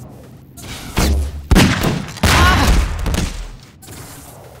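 Gunshots ring out loudly in quick succession.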